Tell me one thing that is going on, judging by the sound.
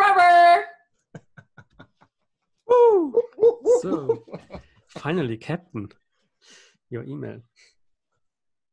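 A young man laughs loudly over an online call.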